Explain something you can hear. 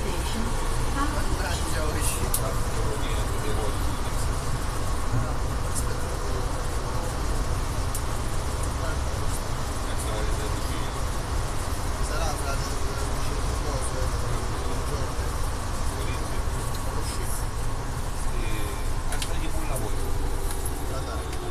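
A train rumbles steadily through a tunnel.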